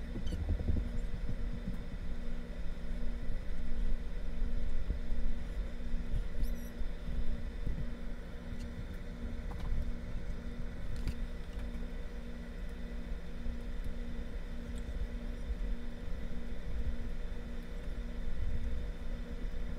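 A paintbrush stipples onto a stretched canvas.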